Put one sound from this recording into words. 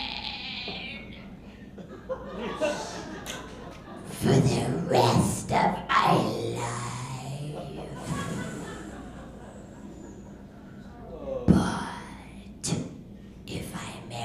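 A woman speaks with animation and strain into a microphone, heard over a loudspeaker in a room.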